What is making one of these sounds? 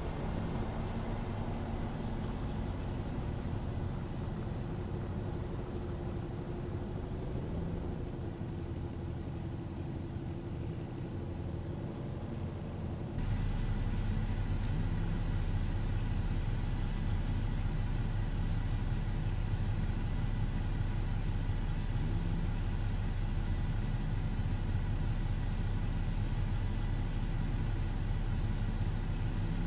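A truck engine idles with a deep, steady rumble.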